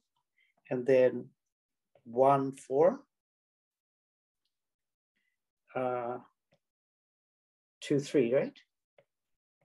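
A man speaks calmly in short phrases with pauses, close to a microphone.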